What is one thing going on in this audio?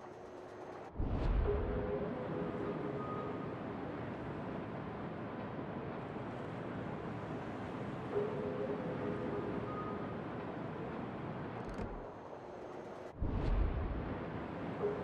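Heavy naval guns fire a loud, booming salvo that rumbles away.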